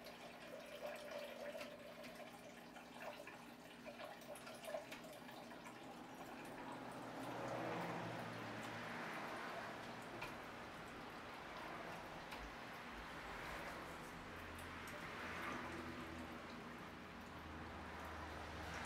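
Objects clink and clatter on a hard counter.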